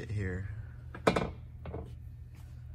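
A hand knocks against a metal step bar.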